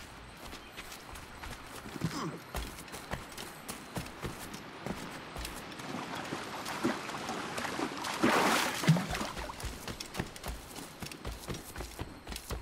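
Footsteps run quickly over leaves and earth.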